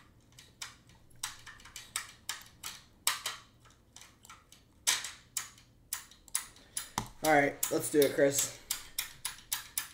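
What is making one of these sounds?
Small plastic pieces click and clack together.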